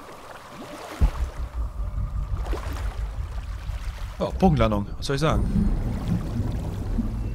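Water churns and gurgles while swimming underwater.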